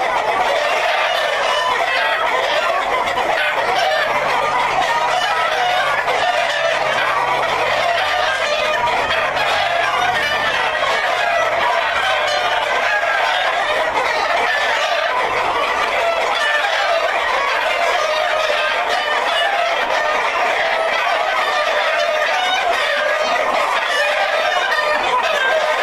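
Many chickens cluck and squawk all around, close by, without a break.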